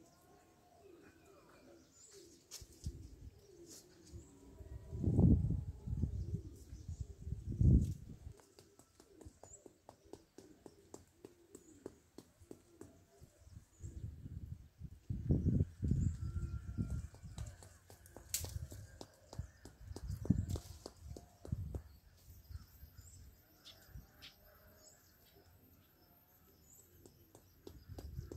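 Leaves and branches rustle as a small monkey climbs through a tree.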